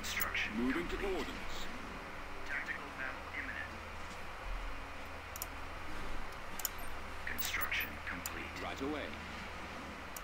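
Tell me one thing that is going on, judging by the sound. A man talks casually into a nearby microphone.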